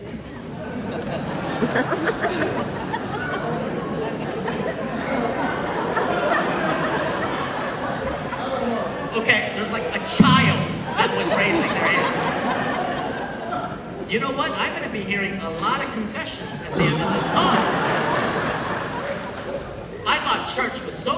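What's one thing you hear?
A man speaks with animation through a microphone and loudspeakers in a large echoing hall.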